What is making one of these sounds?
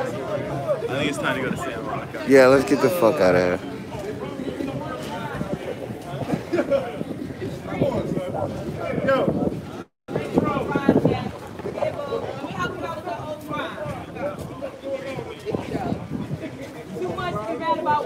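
Several men and women talk nearby outdoors.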